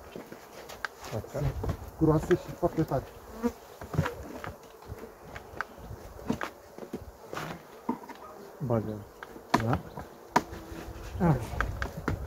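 Wooden hive parts knock and scrape.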